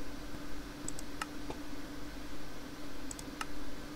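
A menu button clicks softly a few times.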